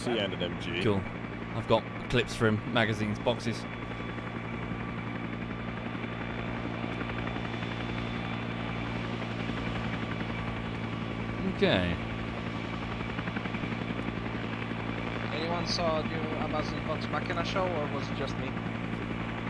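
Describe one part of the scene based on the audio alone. A helicopter's rotor thumps and drones steadily overhead.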